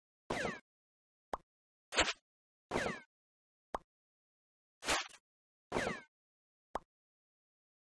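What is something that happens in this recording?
Short cartoon popping sounds come one after another.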